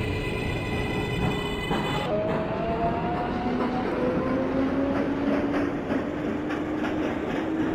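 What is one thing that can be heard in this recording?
Train wheels rumble and clatter steadily over the tracks.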